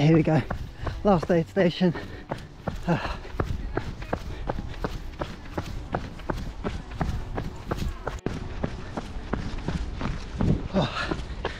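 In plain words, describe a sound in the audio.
Footsteps thud steadily on a path as someone runs.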